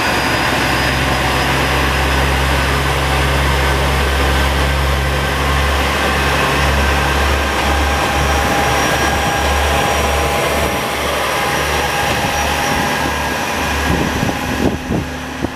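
A diesel train engine rumbles loudly nearby, then fades.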